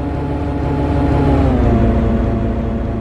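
A train engine's hum drops in pitch as it passes close by.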